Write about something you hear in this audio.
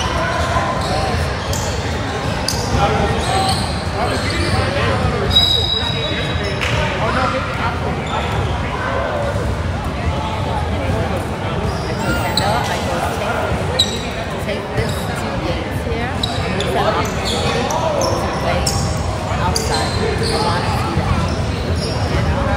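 Young players talk and call out in a large echoing gym.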